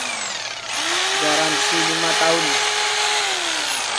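A jigsaw blade saws through wood.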